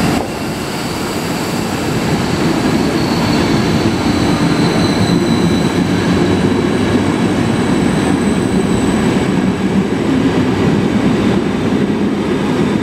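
Train wheels squeal faintly on the track.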